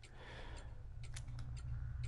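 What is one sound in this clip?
A keypad button clicks softly.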